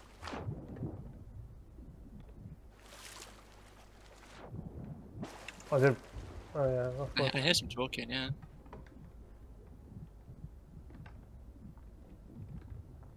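Water rumbles, muffled, as a swimmer moves underwater.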